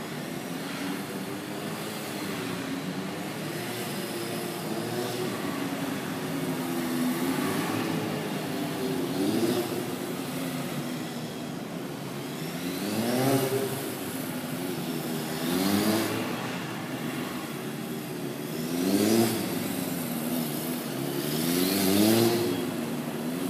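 A motorcycle engine hums at low speed and revs up again and again.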